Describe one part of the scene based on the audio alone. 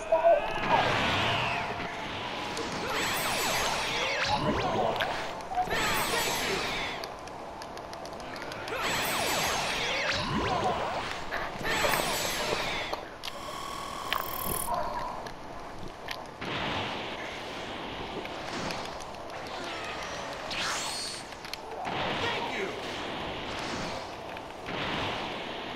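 Video game energy attacks whoosh and crackle in bursts.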